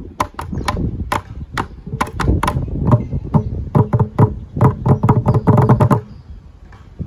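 Children drum quick rhythms on plastic buckets with sticks.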